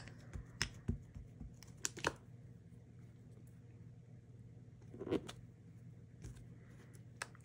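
Plastic clicks and taps as a clear stamp block is handled.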